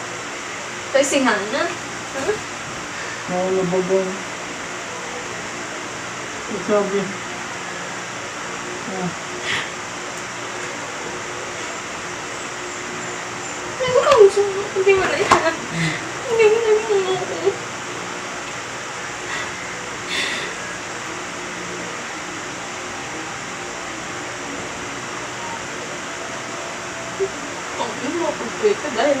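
A young woman talks softly nearby.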